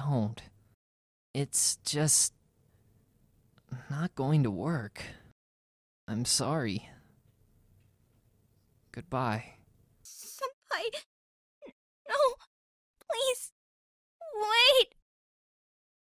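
A young woman speaks pleadingly and tearfully, close by.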